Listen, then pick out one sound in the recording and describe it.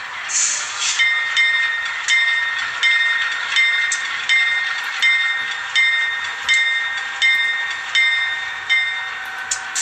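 A model locomotive's bell rings in a steady rhythm.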